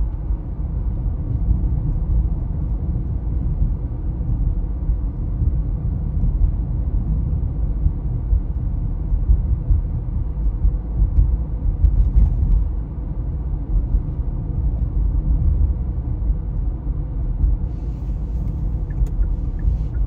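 A car engine hums steadily with a low rumble from inside the car.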